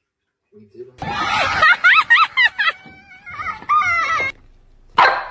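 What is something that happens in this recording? A woman laughs loudly and excitedly.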